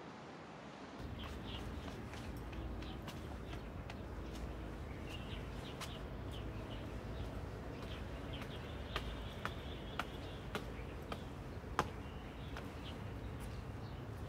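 Light footsteps walk along a paved path outdoors.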